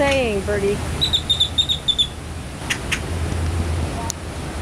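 A bird makes rapid, sharp clicks close by.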